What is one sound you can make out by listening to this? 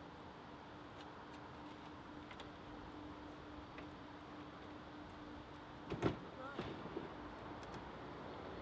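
Small objects knock and clatter as a man handles them.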